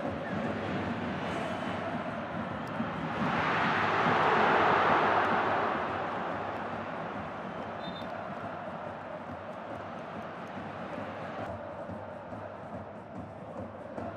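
A large stadium crowd roars throughout, swelling loudly for a few seconds and then fading back.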